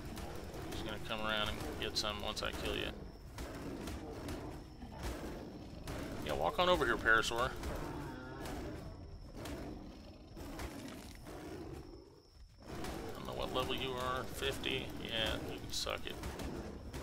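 A large beast growls and roars in bursts.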